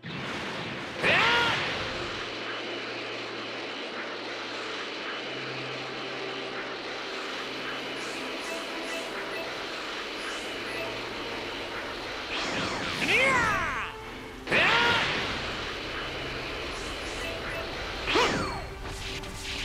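A sharp whooshing burst sweeps downward now and then.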